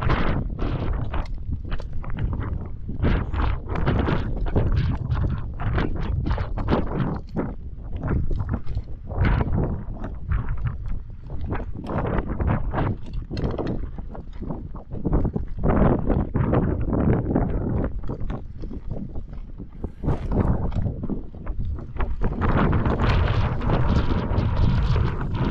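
A mountain bike's frame and chain rattle as it jolts over rocks.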